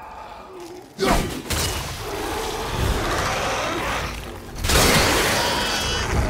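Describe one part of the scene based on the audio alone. A heavy axe strikes and clashes in a fight.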